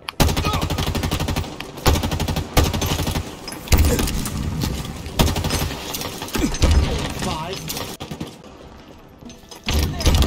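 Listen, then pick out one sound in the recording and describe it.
An automatic rifle fires in rapid bursts, close by.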